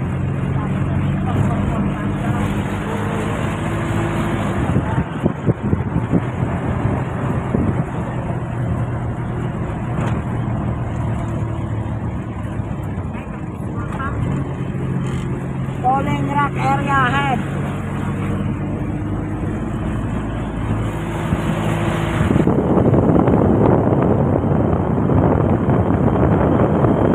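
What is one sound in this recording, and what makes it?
A large vehicle's engine hums steadily as it drives along a road.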